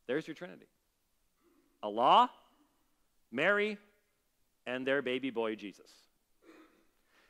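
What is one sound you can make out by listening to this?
A middle-aged man preaches with animation through a microphone, pausing between phrases.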